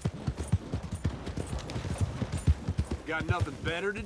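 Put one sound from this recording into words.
A horse's hooves thump on the ground.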